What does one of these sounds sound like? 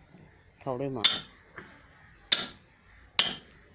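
A hatchet strikes wood with sharp chops.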